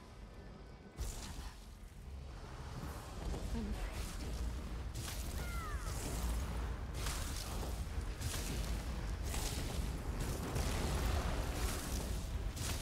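Loud fight sounds of blows and crackling blasts burst out repeatedly.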